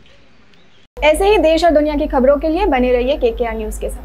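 A young woman reads out news clearly through a microphone.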